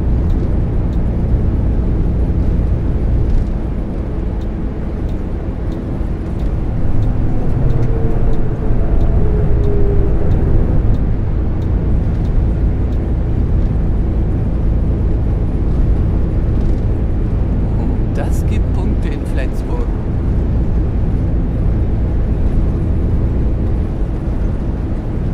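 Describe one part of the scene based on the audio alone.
A bus engine hums steadily at speed.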